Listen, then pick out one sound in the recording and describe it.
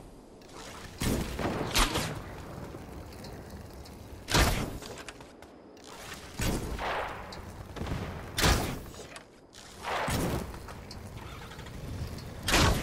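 A bow string twangs sharply again and again as arrows fly off.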